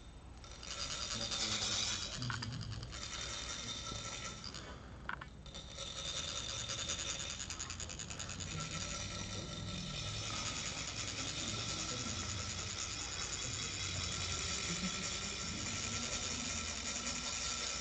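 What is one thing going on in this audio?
A metal sand funnel is rubbed steadily, making a high, dense rasping sound.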